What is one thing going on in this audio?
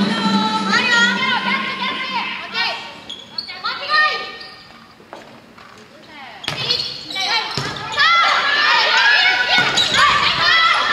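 Young women shout and call out in a large echoing hall.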